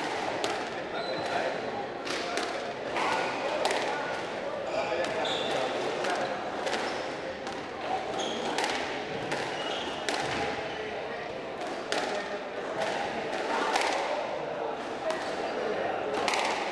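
A squash ball smacks against the walls of an echoing court again and again.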